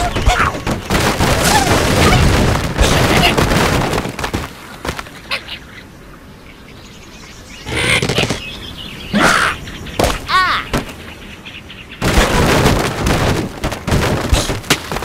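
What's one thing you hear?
Wooden and stone blocks crash and clatter as a tower collapses.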